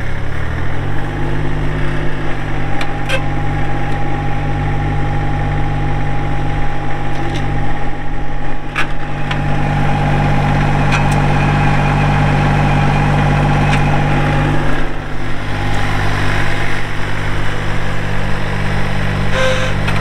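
A small tractor engine revs up and whines as the tractor drives.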